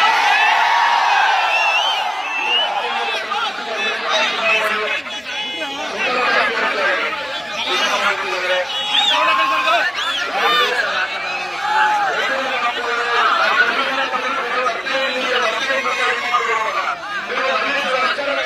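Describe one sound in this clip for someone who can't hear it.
A huge outdoor crowd cheers and shouts loudly.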